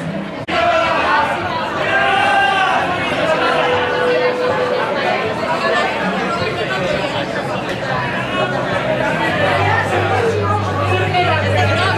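A crowd of people chatters loudly outdoors.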